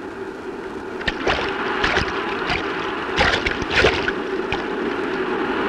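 Water splashes as a man wades through shallow surf.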